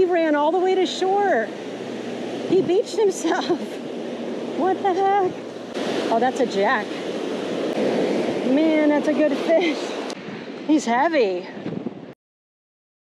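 Waves break and wash up on a beach.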